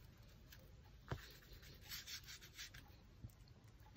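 A brush scratches and scrubs thick paint across paper.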